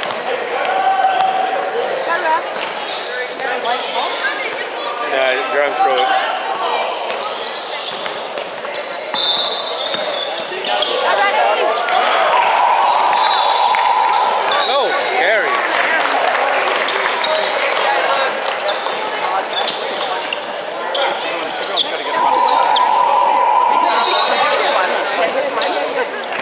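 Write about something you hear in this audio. Young players and spectators shout and call out in a large echoing gym.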